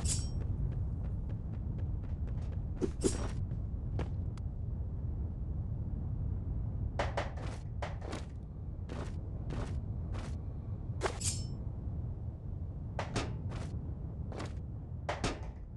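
Footsteps tap quickly on a hard surface.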